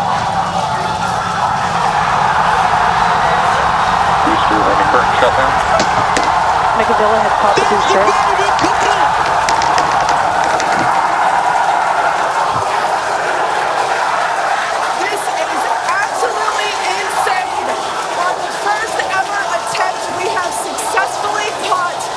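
A rocket engine roars loudly and steadily.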